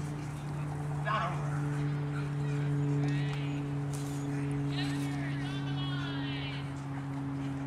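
A woman calls out to a dog from a distance, outdoors.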